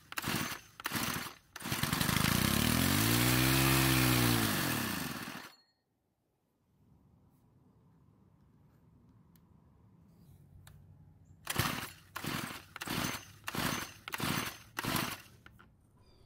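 A starter cord is pulled hard several times with a sharp ripping rasp.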